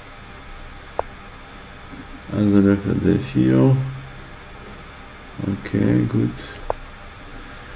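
A soft click sounds as a chess piece is moved in a computer game.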